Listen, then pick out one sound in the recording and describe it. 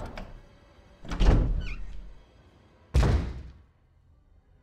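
A heavy wooden door creaks open and bangs.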